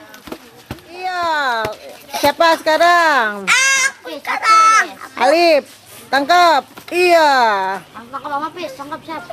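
A young boy sings loudly in a high voice.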